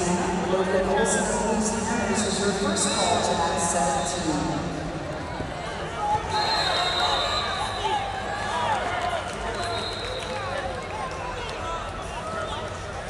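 A large crowd chatters and calls out in a big echoing hall.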